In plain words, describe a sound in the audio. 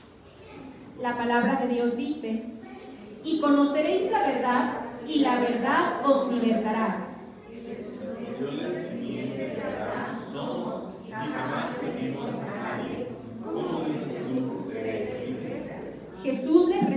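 A group of men and women pray aloud together in unison in an echoing hall.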